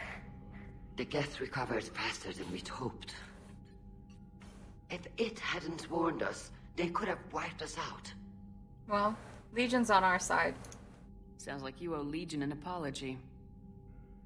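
A woman speaks calmly through a loudspeaker.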